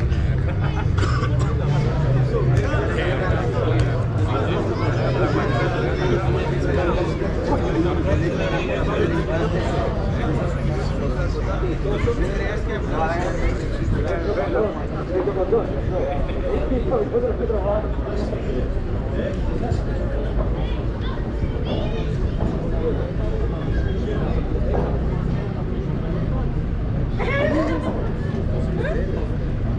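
Men and women chatter nearby in a steady murmur.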